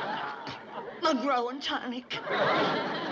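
An elderly woman exclaims in surprise.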